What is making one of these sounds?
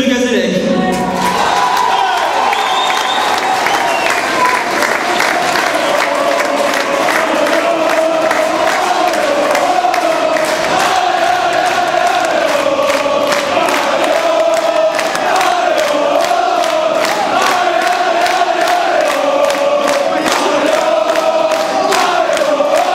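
A large crowd sings and chants together in an echoing hall.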